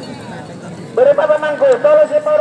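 A man nearby calls out loudly.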